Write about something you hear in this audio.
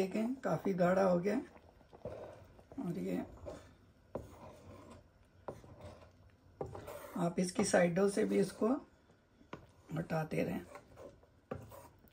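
A spatula scrapes and stirs a thick sauce in a pan.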